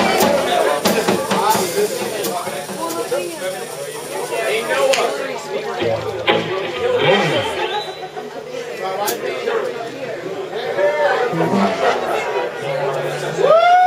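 A drummer plays the drums.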